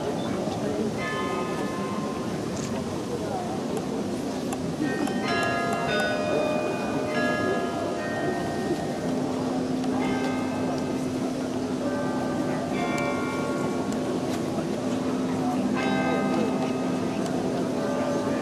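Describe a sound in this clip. Carillon bells ring out a slow melody outdoors.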